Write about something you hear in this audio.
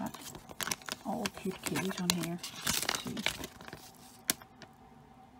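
A plastic wrapper crinkles and rustles as hands handle it.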